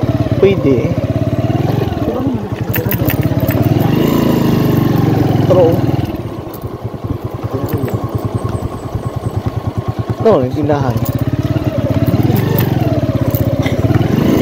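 A motorcycle engine putters steadily up close, easing off and then revving up again.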